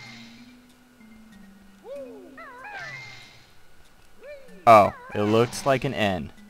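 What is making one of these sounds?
Bouncy video game music plays softly.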